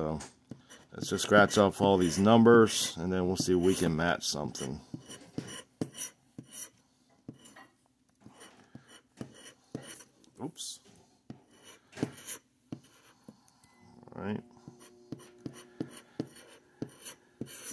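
A plastic scraper scratches rapidly across a paper card.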